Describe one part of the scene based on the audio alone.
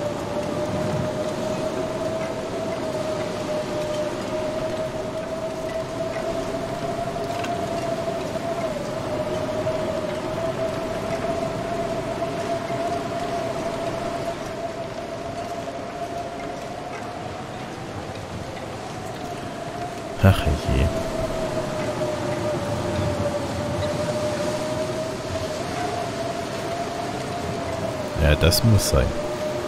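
A strong wind howls steadily through a snowstorm.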